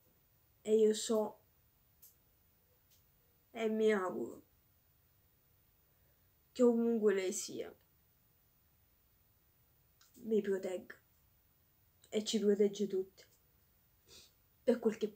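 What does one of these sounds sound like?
A woman speaks calmly close by, in short phrases with pauses.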